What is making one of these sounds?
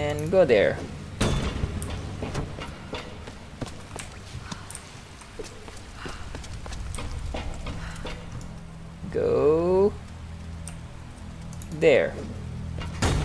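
A woman grunts with effort.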